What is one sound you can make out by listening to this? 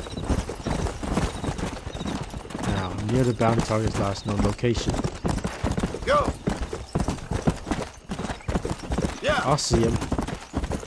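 Horse hooves gallop quickly on a dirt trail.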